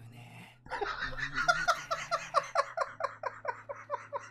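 A young man laughs in rapid bursts close to a microphone.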